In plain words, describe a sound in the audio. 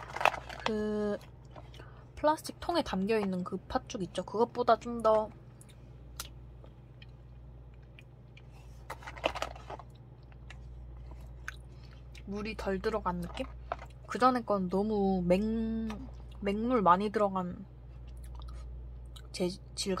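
A metal spoon scrapes and scoops through thick, wet food.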